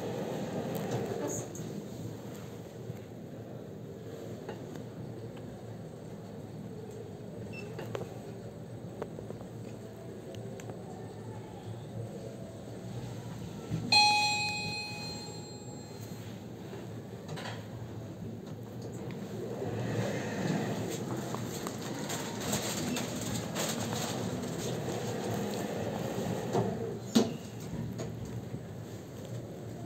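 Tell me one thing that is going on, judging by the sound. An elevator hums and rumbles as it moves.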